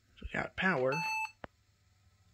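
A computer gives a short, high electronic beep.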